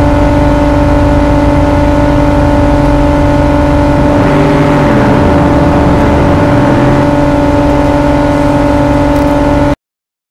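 Car tyres squeal as they spin on the road.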